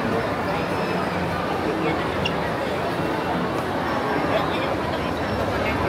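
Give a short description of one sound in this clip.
A crowd of people chatters loudly all around in a large echoing hall.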